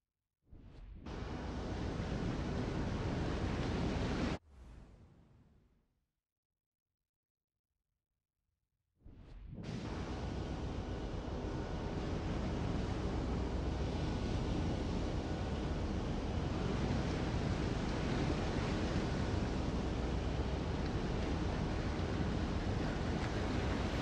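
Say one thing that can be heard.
Water rushes and splashes along a ship's hull.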